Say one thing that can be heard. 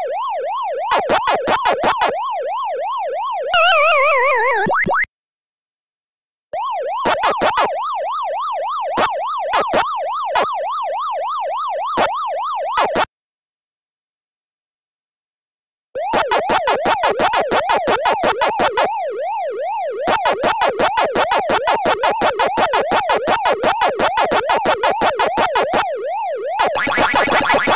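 A retro arcade game plays a wobbling siren-like electronic tone.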